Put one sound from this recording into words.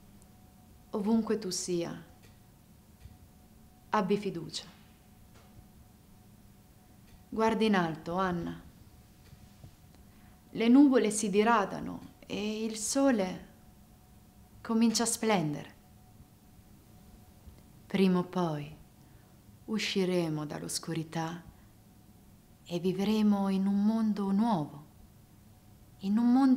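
A young woman speaks slowly and expressively in short phrases, close by.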